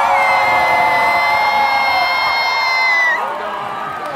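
A woman sings a long held note through loudspeakers in a large hall.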